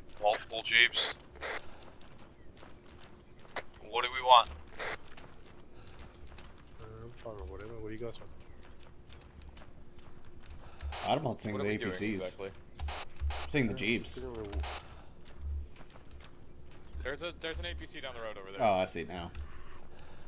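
Footsteps tread steadily on soft dirt.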